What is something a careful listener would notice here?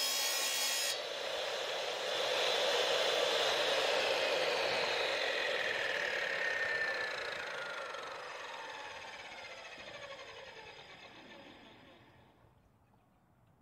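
A tile saw spins down, its whine slowly falling and fading.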